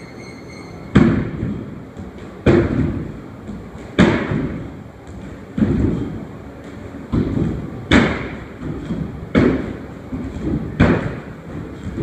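Feet land heavily on a hard floor again and again in an echoing room.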